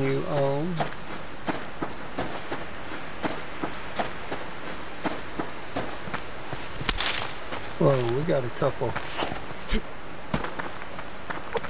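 Footsteps crunch steadily through grass and gravel.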